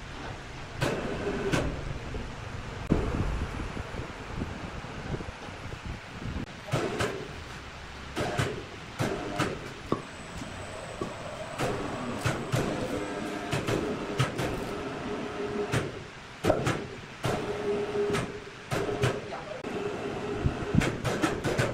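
A heavy log rolls and thumps onto a sawmill carriage.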